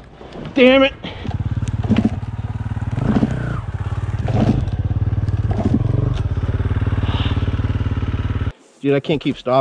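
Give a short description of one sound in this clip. A dirt bike engine runs as the bike rides along a trail.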